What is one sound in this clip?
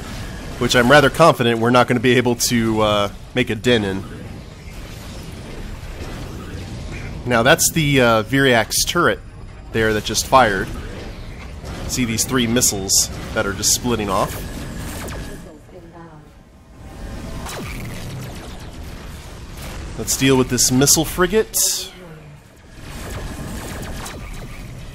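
A spaceship's engines roar steadily.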